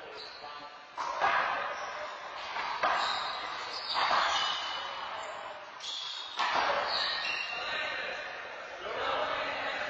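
A rubber ball smacks hard against walls and floor, echoing around a large hard-walled room.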